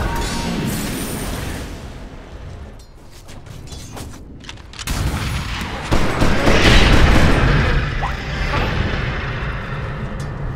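Game fighting sounds clash and crackle.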